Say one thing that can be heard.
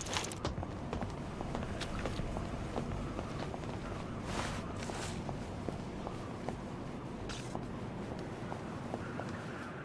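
Footsteps tread steadily on cobblestones.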